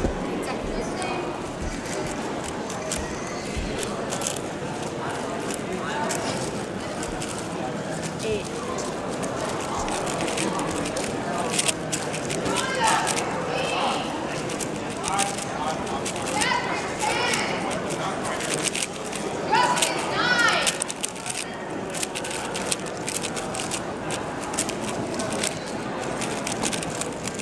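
A puzzle cube clicks and clatters rapidly as it is turned.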